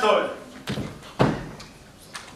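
A body thuds heavily onto a floor.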